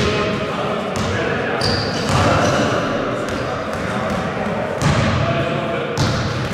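A basketball thuds against a backboard and rim.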